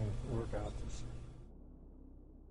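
An elderly man speaks calmly, then stops.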